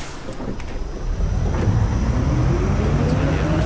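A bus engine roars and rises in pitch as the bus pulls away.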